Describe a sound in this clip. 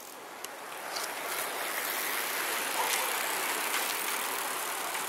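Bicycles roll by on a paved road.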